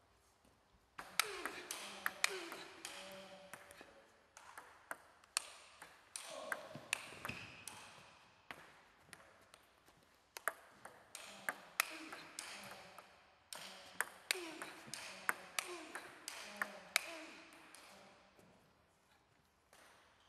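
A table tennis ball is struck by a paddle and bounces on a table, echoing in a large hall.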